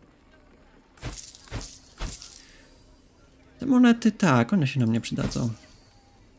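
Short interface clicks sound as items are moved.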